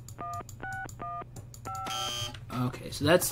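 Keypad buttons beep in short electronic tones as a code is entered.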